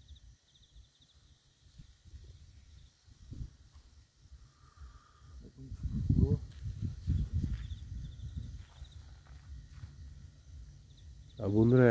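Footsteps crunch over dry leaves.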